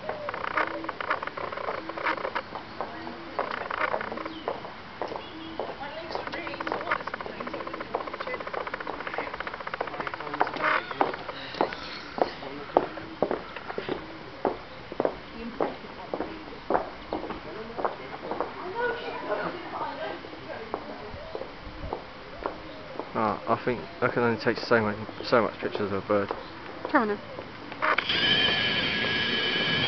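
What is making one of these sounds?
Shallow water trickles and gurgles steadily in a stream.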